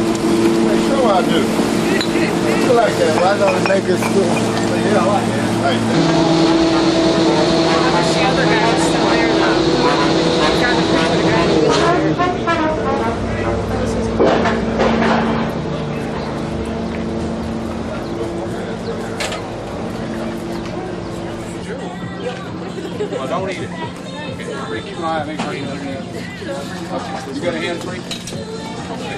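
People chatter nearby on a busy street.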